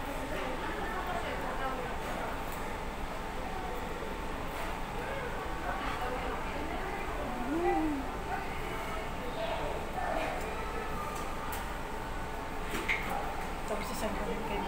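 A young woman talks quietly close by.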